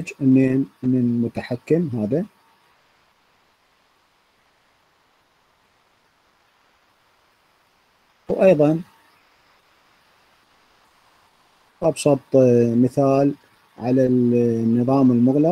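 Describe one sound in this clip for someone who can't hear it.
A man speaks calmly through a microphone, pausing now and then.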